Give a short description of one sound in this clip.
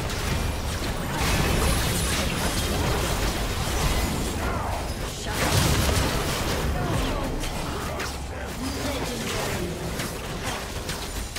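Magic blasts and clashing effects crackle and boom in a video game battle.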